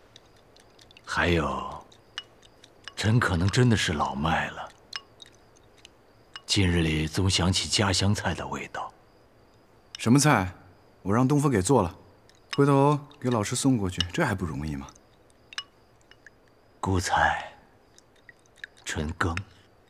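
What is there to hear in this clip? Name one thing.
An older man speaks calmly and warmly, close by.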